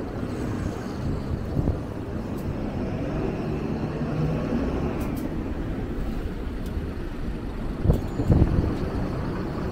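A bus engine idles and rumbles close by.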